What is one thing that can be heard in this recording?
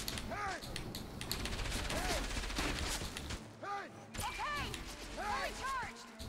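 A wooden crank creaks as it turns.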